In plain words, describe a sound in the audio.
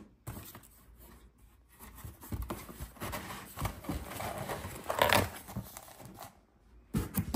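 Cardboard flaps scrape and rustle as a box is pulled open.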